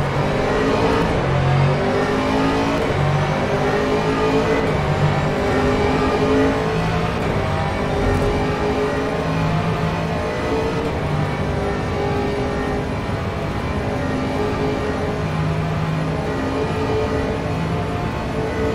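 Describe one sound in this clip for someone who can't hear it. A racing car engine drones loudly, its pitch rising and falling as it speeds up and slows down.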